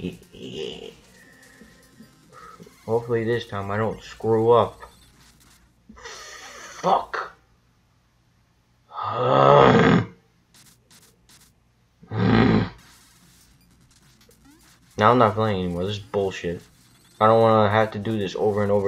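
Retro video game sound effects blip and chime.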